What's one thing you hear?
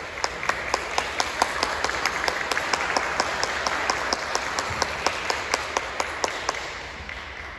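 A man claps his hands steadily in a large echoing hall.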